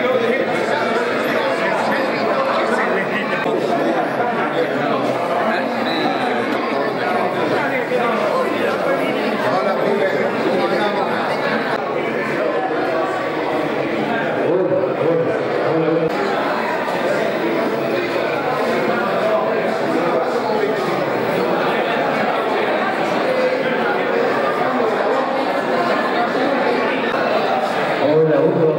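A crowd of men and women chatter all around in a busy indoor room.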